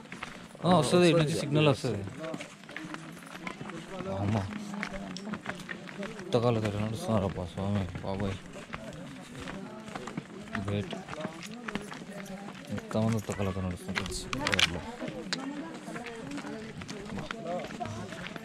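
Footsteps crunch on a stony dirt path.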